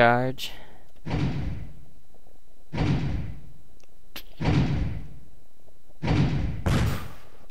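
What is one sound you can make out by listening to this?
A cannon fires with a deep boom, again and again.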